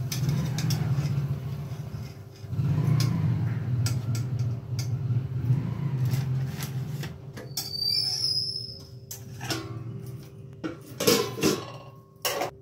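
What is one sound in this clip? Fried snacks rustle and knock as they are dropped onto foil.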